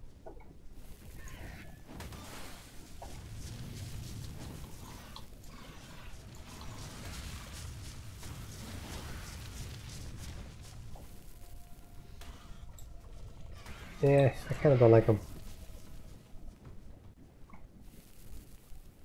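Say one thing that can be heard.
Large wings flap with heavy whooshes.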